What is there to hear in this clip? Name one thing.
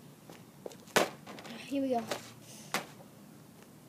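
A hockey stick smacks a ball on pavement.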